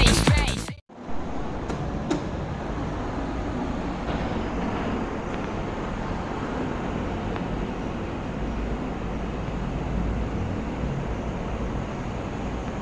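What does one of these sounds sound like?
A lift machine hums low and steadily in the background.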